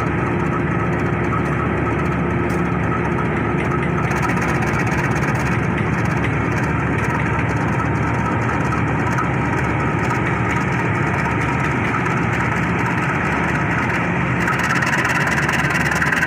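A diesel locomotive engine rumbles loudly close by as it slowly rolls along the track.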